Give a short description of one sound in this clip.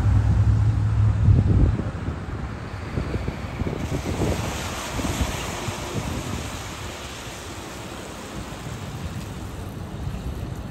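A bus engine rumbles as the bus drives slowly past.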